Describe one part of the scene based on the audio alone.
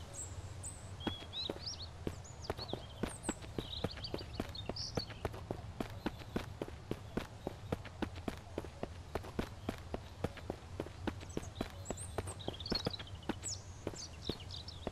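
Running footsteps thud steadily on a hard road.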